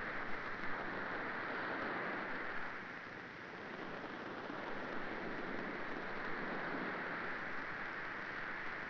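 Water washes against the hull of a moving ship.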